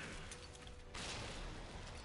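A fiery explosion booms.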